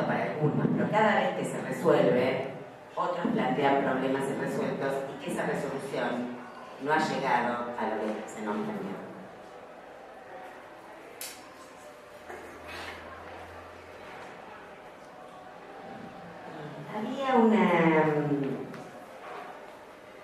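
A woman speaks with animation into a microphone, heard through loudspeakers in a large room.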